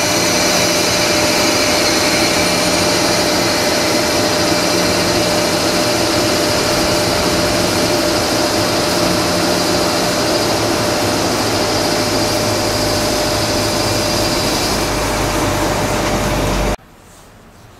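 An electric locomotive rumbles past close by, its wheels clattering on the rails.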